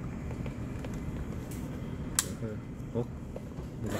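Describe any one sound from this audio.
A small plastic hinge clicks as a toy car door is moved by hand.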